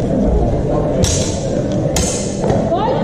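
Wooden practice swords clack together sharply.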